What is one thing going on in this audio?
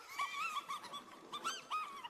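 A young girl speaks cheerfully.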